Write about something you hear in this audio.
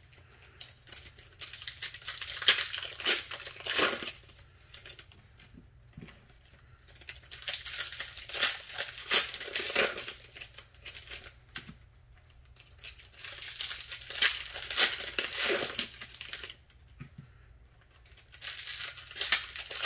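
Foil card packs crinkle and tear open close by.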